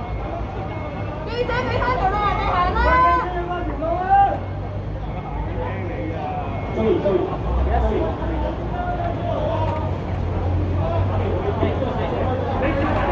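A crowd of people talks in the background.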